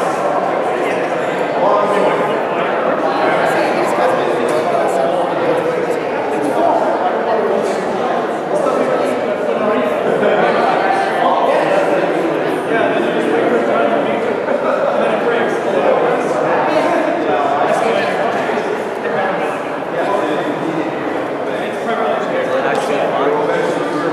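Many young people chatter and talk at once in a large echoing hall.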